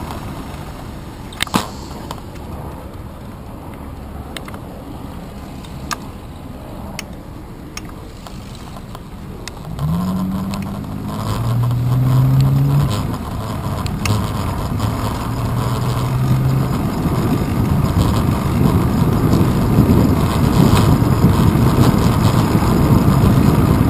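Wind buffets the microphone, growing stronger.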